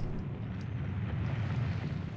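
Lava bubbles with a low rumble.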